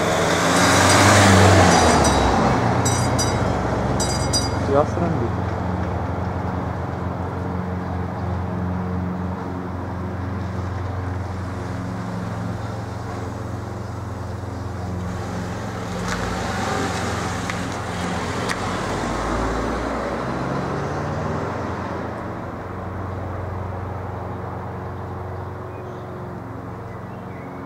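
A level crossing's mechanical bell rings.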